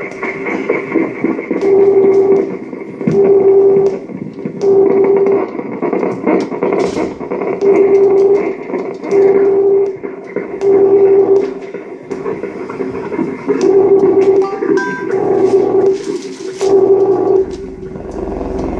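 Sharp electronic clicks and crackles sound throughout.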